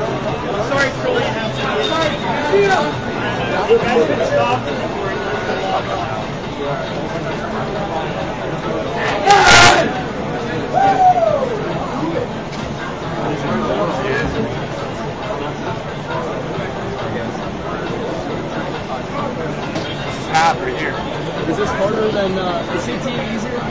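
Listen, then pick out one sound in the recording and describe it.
A crowd of people talks steadily in a busy room.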